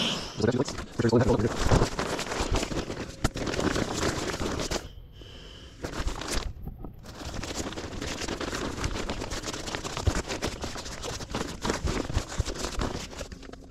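An inflatable pad rustles and crinkles as it is rolled up.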